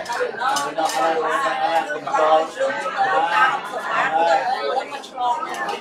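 Dishes and spoons clink on a table.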